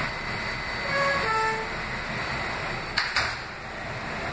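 Subway doors slide shut with a thud.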